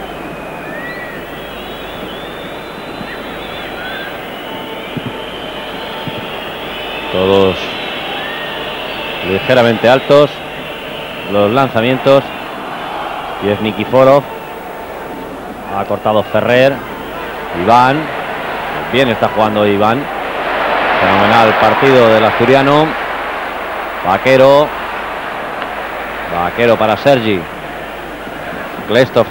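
A large stadium crowd murmurs and roars in the distance.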